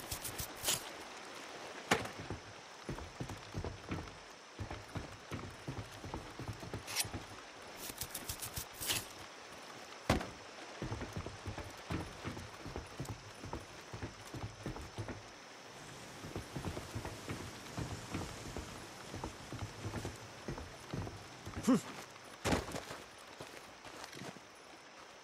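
Footsteps crunch and thud steadily on hard ground.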